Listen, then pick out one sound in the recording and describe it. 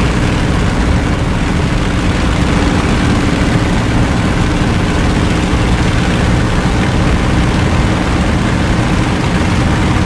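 Wind rushes past an aircraft cockpit.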